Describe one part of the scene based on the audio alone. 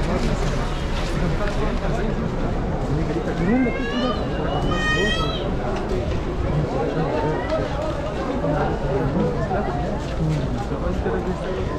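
A crowd of people murmurs and talks while walking outdoors.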